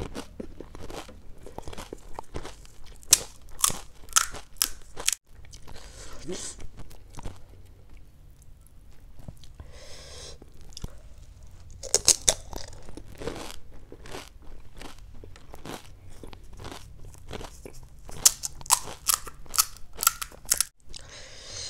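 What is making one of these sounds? A woman crunches loudly on crisp hollow shells, close to a microphone.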